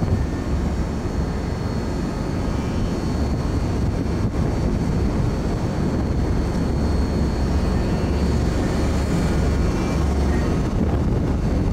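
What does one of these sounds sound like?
Heavy machinery rumbles low and steadily.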